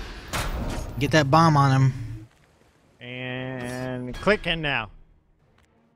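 Loud game sound effects ring out as a hero spawns.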